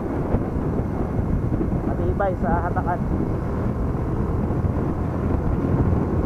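Wind rushes and buffets close by.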